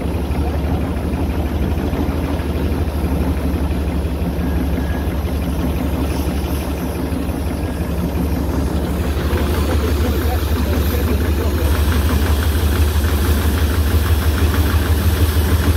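A steam engine chugs and rumbles steadily up close.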